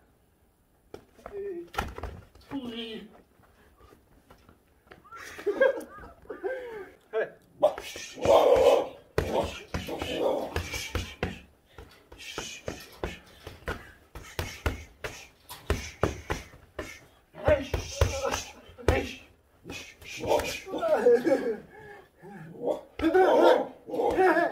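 Boxing gloves smack against padded mitts in quick bursts.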